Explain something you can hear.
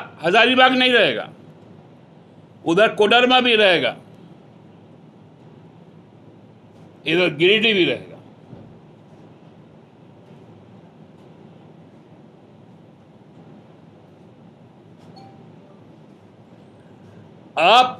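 A middle-aged man speaks forcefully into microphones, in short bursts with long pauses.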